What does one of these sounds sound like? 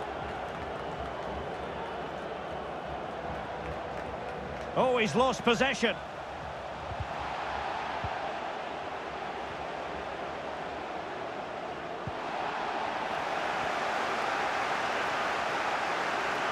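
A large stadium crowd roars and murmurs steadily, swelling louder later on.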